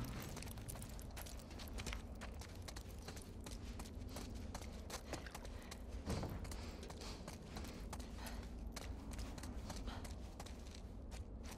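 Footsteps crunch and tap on a hard floor scattered with debris.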